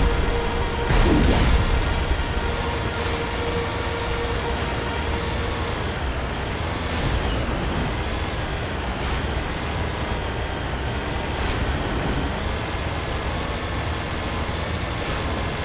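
Water splashes under heavy tyres.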